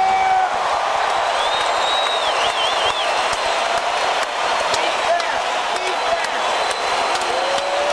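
A large crowd cheers loudly in a big echoing hall.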